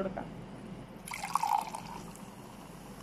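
Liquid pours from a glass into another glass with a splash.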